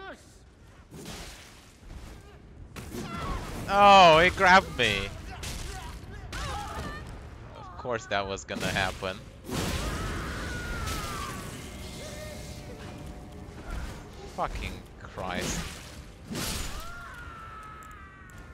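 Heavy weapon blows clash and thud.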